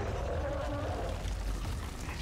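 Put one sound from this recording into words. A boy talks close to a microphone.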